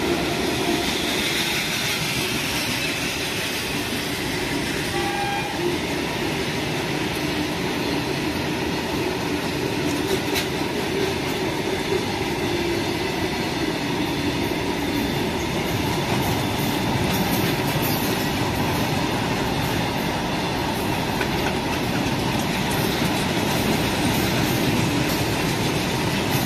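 A long freight train rumbles past close by, its wheels clattering over the rail joints.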